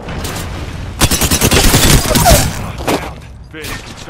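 Rapid gunshots crack out in bursts.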